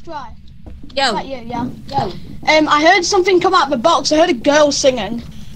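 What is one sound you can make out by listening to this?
A young woman screams in fright.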